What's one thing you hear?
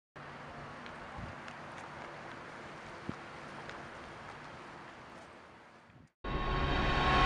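Footsteps walk on pavement outdoors.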